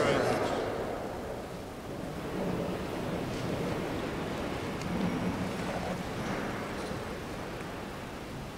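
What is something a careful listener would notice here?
A crowd murmurs softly in a large, echoing hall.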